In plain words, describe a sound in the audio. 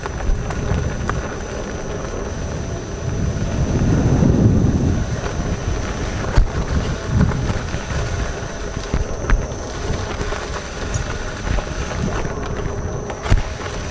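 A tyre rolls over gravel, crunching and popping small stones.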